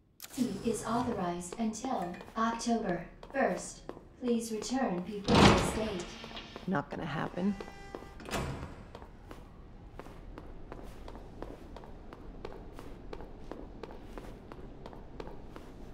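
Heeled footsteps click on a hard floor.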